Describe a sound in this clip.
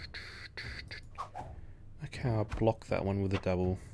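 Playing cards whoosh and slide into place.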